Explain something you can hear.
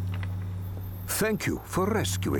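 A man speaks calmly and gratefully.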